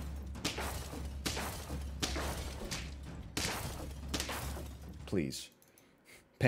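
Game sound effects thump and whoosh repeatedly.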